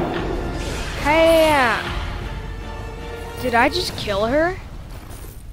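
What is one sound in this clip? A bright electronic chime rings out.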